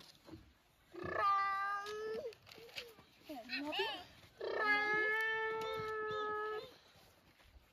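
A young child calls out loudly in a high voice nearby.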